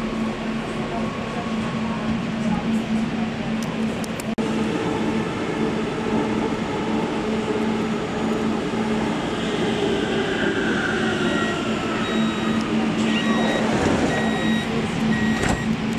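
A subway train rumbles along a platform in a large echoing hall.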